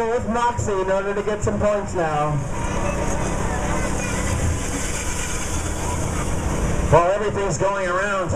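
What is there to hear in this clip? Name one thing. Small go-karts whir along a track.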